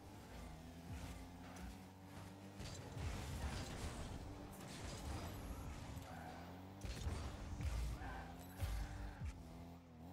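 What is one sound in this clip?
Car boosts whoosh in short bursts.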